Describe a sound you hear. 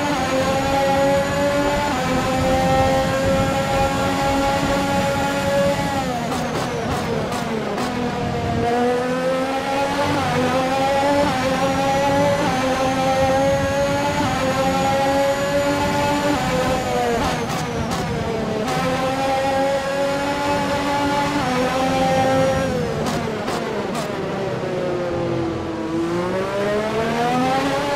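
Rain sprays and hisses under the car's tyres.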